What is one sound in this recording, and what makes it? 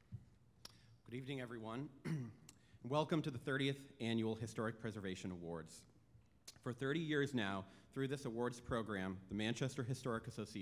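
A second man speaks calmly into a microphone over loudspeakers.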